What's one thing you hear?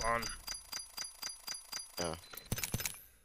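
Quick electronic chimes tick rapidly as a score counts up.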